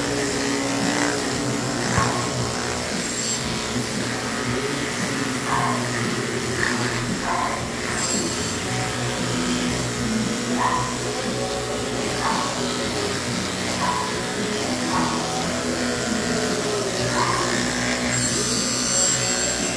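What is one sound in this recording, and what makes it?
Electric clippers buzz steadily close by.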